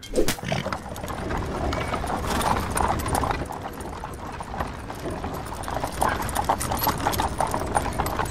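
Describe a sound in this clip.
Wooden cart wheels rumble and creak over the ground.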